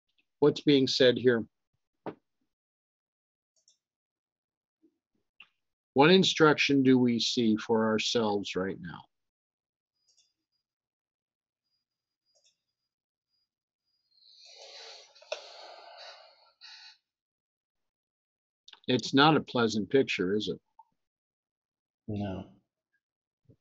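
An older man speaks calmly and close to a microphone, in short bursts with pauses.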